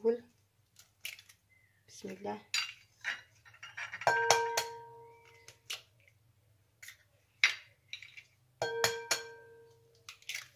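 Eggs crack against the rim of a glass bowl, which rings briefly.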